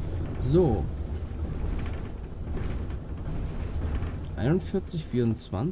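A bus engine hums low and steady as the bus drives along.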